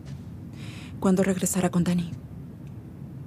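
A young woman speaks with some urgency.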